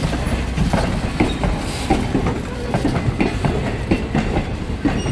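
Steel wheels clatter and click over rail joints.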